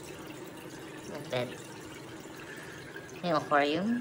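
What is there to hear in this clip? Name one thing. Water splashes and bubbles steadily from an aquarium filter outlet.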